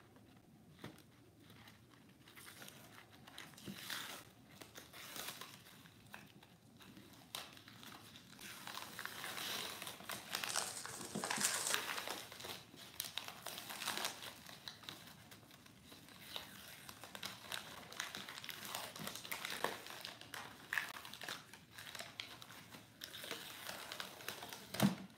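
Cardboard rustles and scrapes as it is handled and cut.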